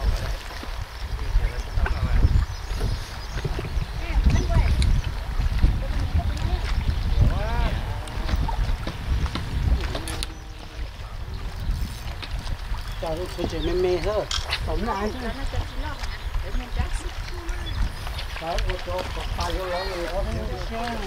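River water ripples and laps against the shore.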